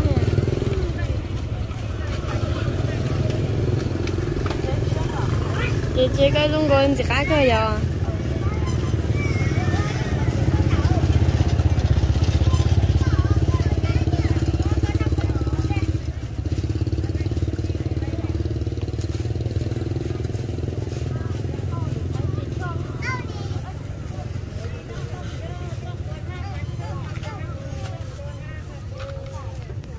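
A market crowd murmurs in the background outdoors.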